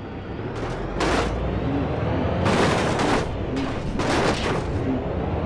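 A heavy bus thumps over a speed bump.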